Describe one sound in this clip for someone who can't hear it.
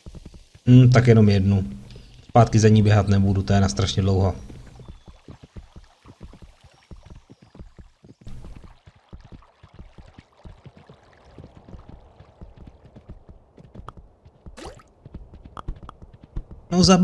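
A horse's hooves thud steadily at a gallop.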